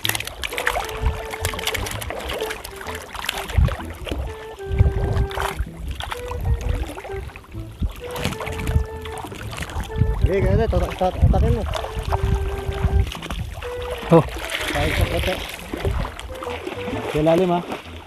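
Water splashes as a man wades.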